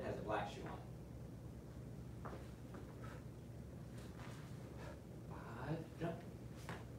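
Feet thud and shuffle on a padded floor.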